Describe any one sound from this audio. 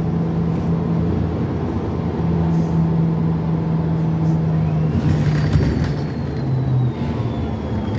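A bus engine hums steadily from inside while driving.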